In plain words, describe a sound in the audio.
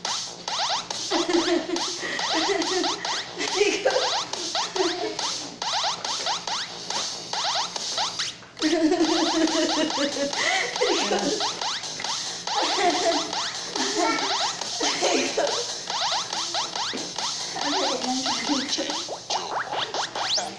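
A woman laughs excitedly nearby.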